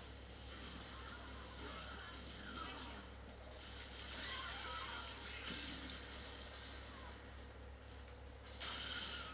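Video game sounds play from a television loudspeaker.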